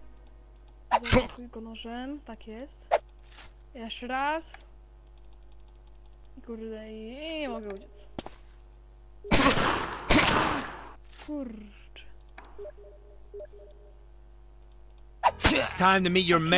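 Gunshots ring out several times.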